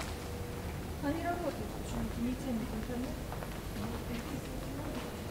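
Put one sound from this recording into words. Women chat quietly nearby as they walk past.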